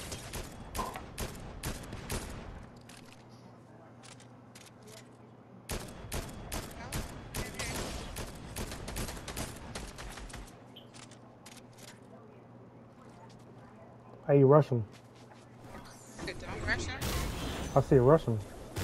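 A sniper rifle fires a sharp shot.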